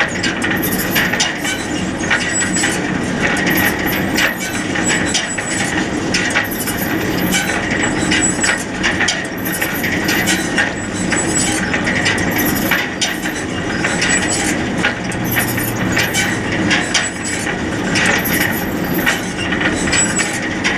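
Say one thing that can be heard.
A hay baler clanks and thumps in a steady rhythm.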